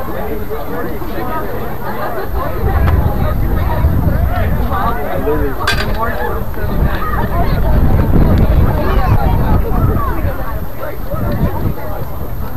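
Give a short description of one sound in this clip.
Young men call out to each other faintly in the distance, outdoors in the open.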